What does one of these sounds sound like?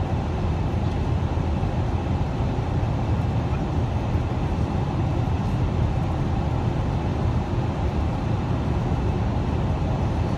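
A car's engine hums steadily inside the cabin.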